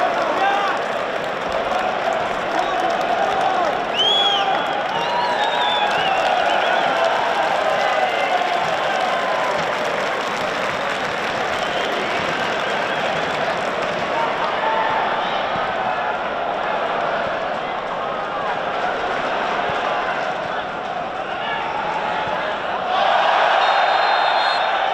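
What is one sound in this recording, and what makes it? A large crowd chants and sings loudly in an open stadium.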